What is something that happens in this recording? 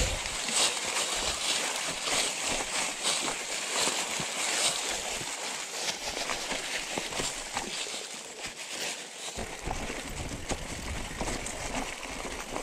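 Bicycle tyres roll and rattle over a rough leafy path.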